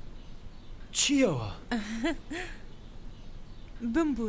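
A young woman speaks cheerfully and close.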